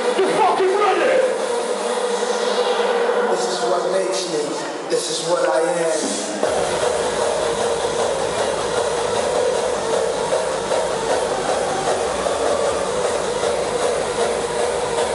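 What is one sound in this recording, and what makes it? Loud electronic dance music plays through powerful loudspeakers in a large hall.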